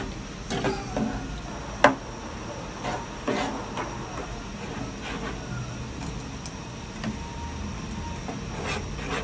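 A metal spoon scrapes and clinks against a pot while stirring a thick sauce.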